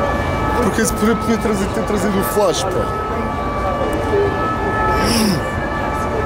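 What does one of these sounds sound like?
Footsteps of people walking pass close by.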